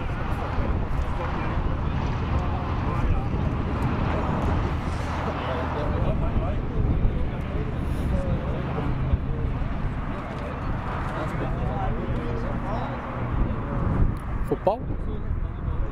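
Young men shout to each other across the field.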